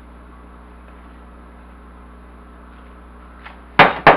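Thick batter pours and plops into a pan.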